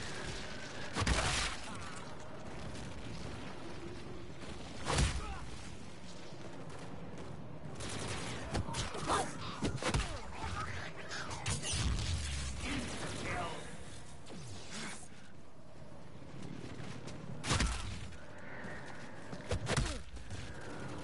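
Gunshots bang now and then.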